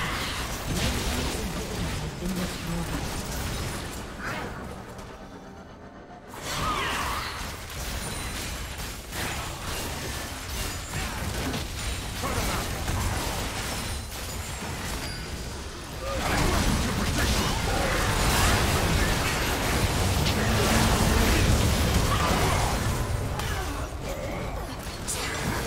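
Video game spell effects whoosh, zap and explode in a busy battle.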